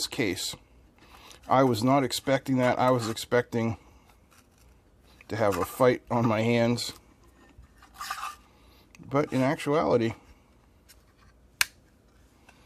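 A plastic case scrapes as it slides over a battery pack and clicks into place.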